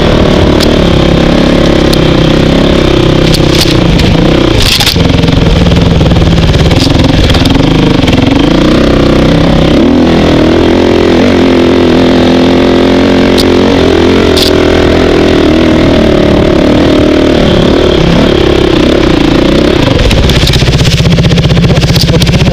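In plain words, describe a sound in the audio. Branches and grass brush against a dirt bike.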